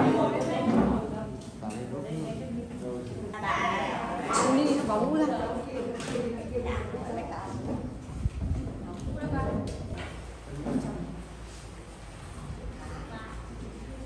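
Several women and men chatter nearby in a room.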